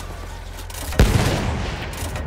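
A tank cannon fires with a sharp bang.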